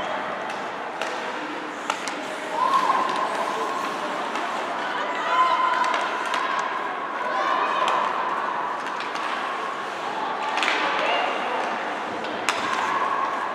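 Hockey sticks click sharply against a puck.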